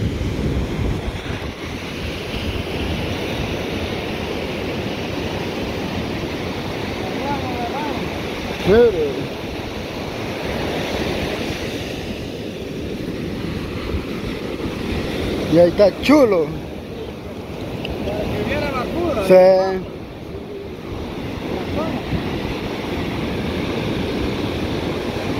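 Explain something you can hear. Ocean waves break and wash steadily onto the shore.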